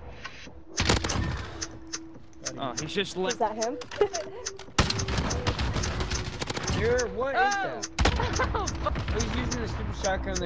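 Rapid gunshots crack sharply in bursts.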